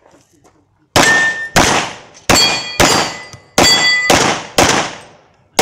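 Steel targets ring with a metallic clang when hit.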